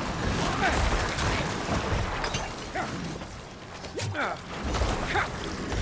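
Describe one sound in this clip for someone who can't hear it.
Game battle effects crash and clang in rapid bursts.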